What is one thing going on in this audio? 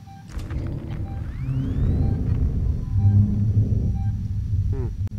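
A handheld tracker gives short, soft electronic beeps.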